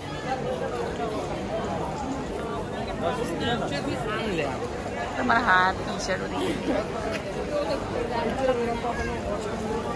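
A crowd of people chatters and murmurs all around.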